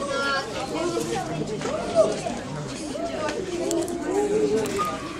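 A crowd of children and adults chatter and call out nearby.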